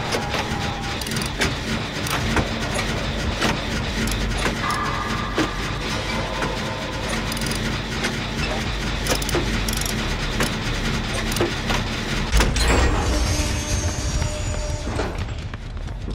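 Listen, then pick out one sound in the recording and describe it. A machine rattles and clanks as its parts are worked on.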